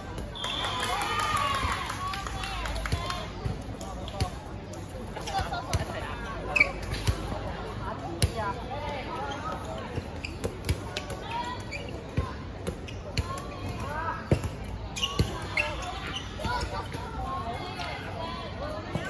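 Young people shout and chatter nearby outdoors.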